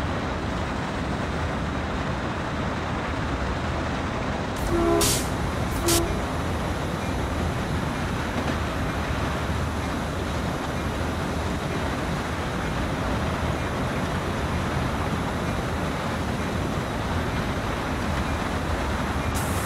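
A locomotive engine rumbles steadily as the train rolls along the rails.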